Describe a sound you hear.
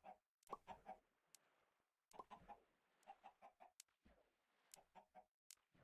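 A sword strikes a chicken with a quick thud.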